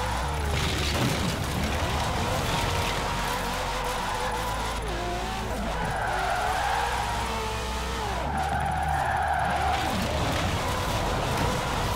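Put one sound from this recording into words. Tyres screech in a long drift.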